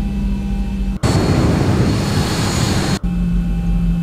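A jet engine roars loudly outside an airliner.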